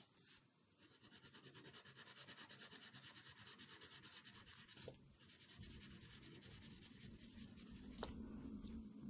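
A pencil scratches rapidly back and forth across paper.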